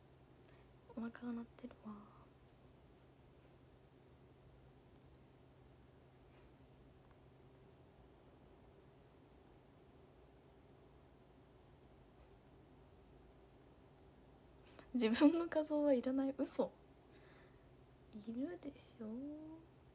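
A young woman speaks softly and briefly, close to a phone microphone.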